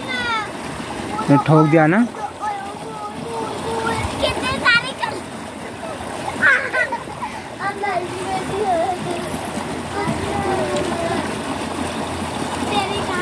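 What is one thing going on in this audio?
A woman talks close by, outdoors.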